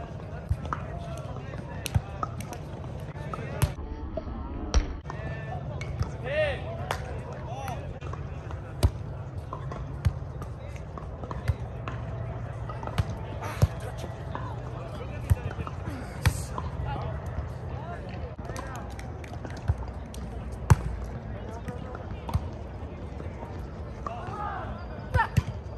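Men and women players call out and shout to each other outdoors.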